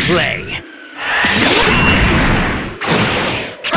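An energy blast bursts with a loud roaring whoosh.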